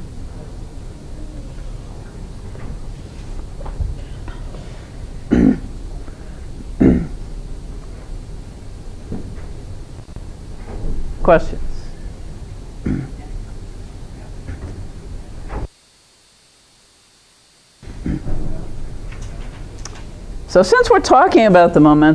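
An elderly woman speaks calmly to an audience.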